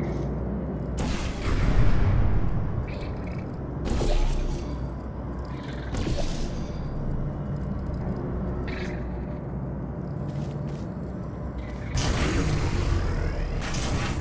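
A sci-fi gun fires with short zapping bursts.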